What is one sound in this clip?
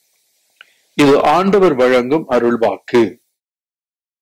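An elderly man chants in a deep, sung voice through a microphone.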